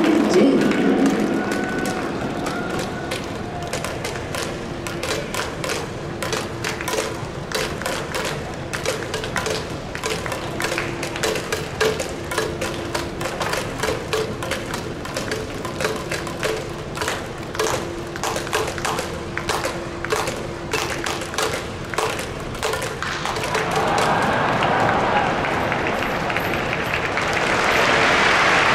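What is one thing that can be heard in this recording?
A stadium crowd claps and cheers steadily in a large open space.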